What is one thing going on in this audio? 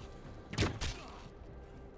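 A bow string twangs as an arrow is shot.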